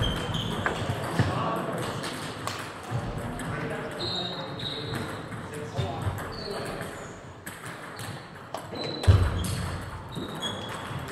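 Table tennis balls click rapidly against paddles and tables in a large echoing hall.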